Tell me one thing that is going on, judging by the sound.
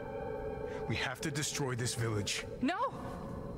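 A man speaks in a low, apologetic voice.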